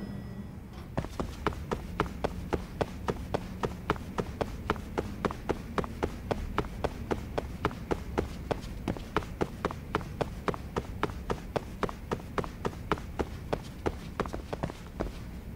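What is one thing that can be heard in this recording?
Quick footsteps run along a hard floor.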